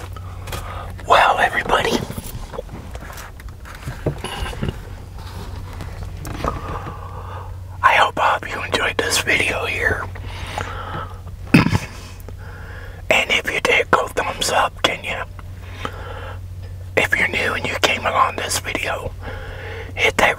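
A middle-aged man talks with animation close to a microphone.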